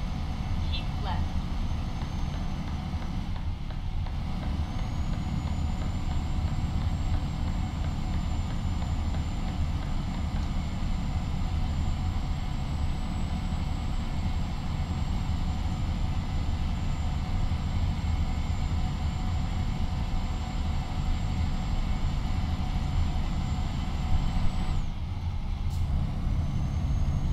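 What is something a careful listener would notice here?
A truck engine drones steadily at highway speed.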